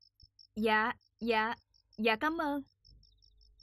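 A young woman speaks into a phone in short, high phrases.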